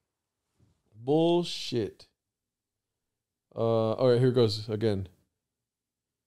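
A man speaks calmly and close to a microphone in two short bursts.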